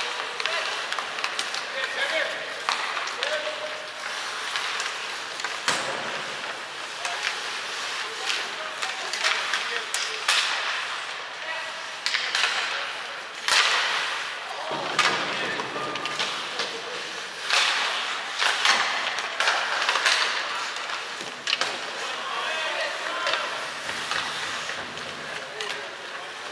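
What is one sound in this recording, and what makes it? Skate blades scrape and hiss across ice in a large echoing arena.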